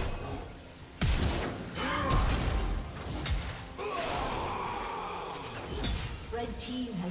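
Sharp impacts strike repeatedly during the fight.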